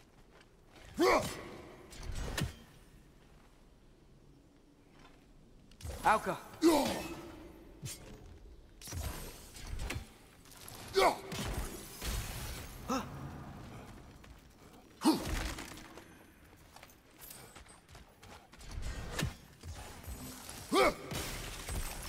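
An axe whooshes through the air and strikes with a heavy thud.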